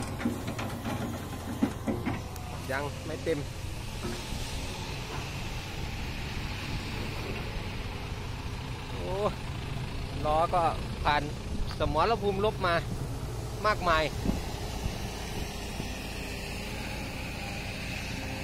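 A heavy diesel engine idles with a steady low rumble.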